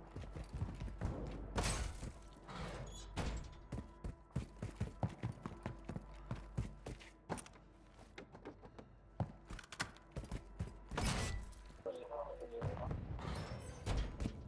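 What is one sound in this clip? Footsteps thud quickly on hard floors and metal stairs.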